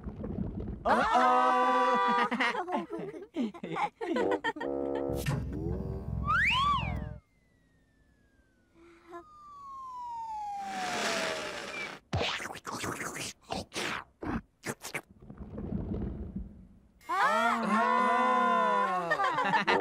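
High, childlike voices cheer and babble playfully.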